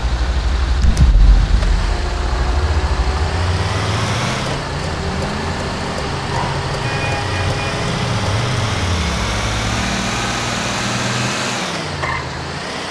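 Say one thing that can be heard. A heavy truck engine hums and revs as it drives.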